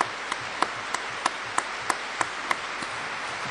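A man claps his hands a few times.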